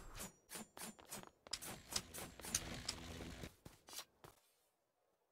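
Sword strikes land in quick succession.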